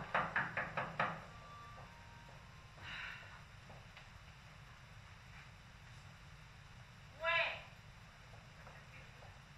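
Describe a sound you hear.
A woman's footsteps tap across a tiled floor.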